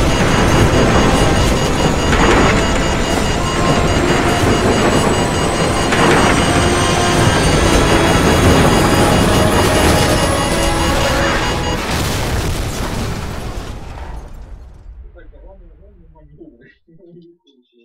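A helicopter's engine and rotors roar loudly and steadily, then fade away.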